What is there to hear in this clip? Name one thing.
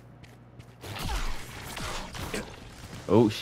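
A crackling magical whoosh bursts out close by.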